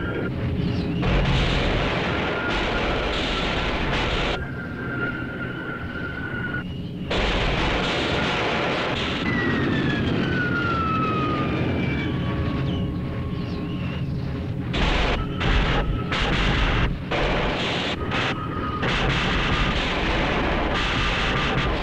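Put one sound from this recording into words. Explosions burst with a loud, crackling roar.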